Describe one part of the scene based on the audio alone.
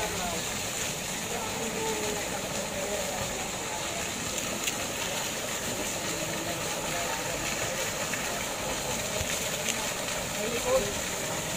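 Women chat faintly nearby.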